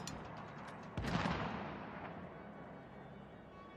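A rifle fires a single heavy shot that echoes away.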